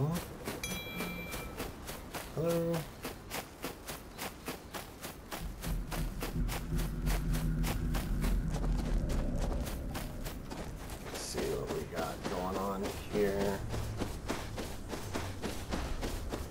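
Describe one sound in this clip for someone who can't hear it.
Quick footsteps crunch steadily over dirt and sand.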